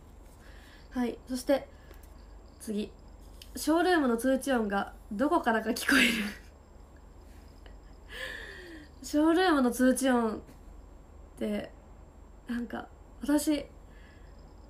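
A young woman speaks brightly and playfully close to a microphone.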